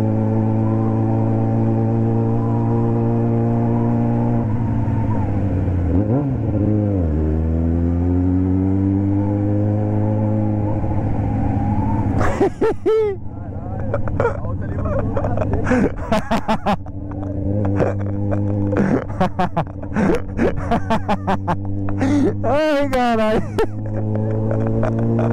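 A motorcycle engine hums steadily close by, rising and falling in pitch as it revs and shifts gears.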